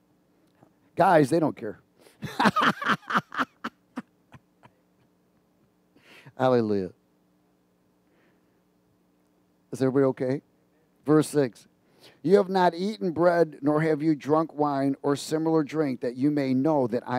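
A man speaks with animation into a headset microphone, pausing often.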